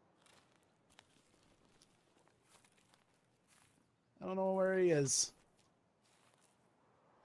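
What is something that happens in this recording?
Footsteps rustle softly through tall grass.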